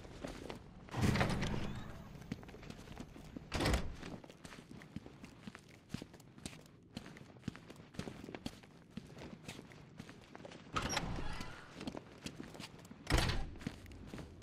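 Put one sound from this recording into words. A heavy door swings open with a loud thud.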